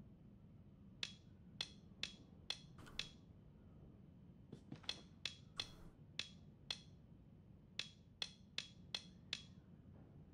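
A combination lock's wheels click sharply as they turn, one notch at a time.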